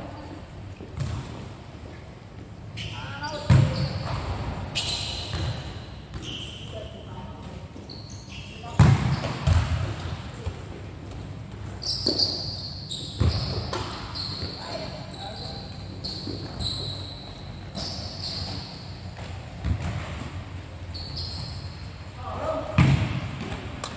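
A ball thumps as players kick it, echoing in a large covered hall.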